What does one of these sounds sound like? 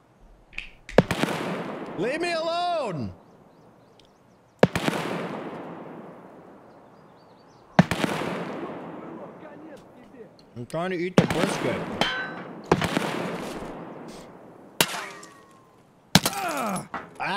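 Loud rifle shots ring out with a long echoing tail, several times.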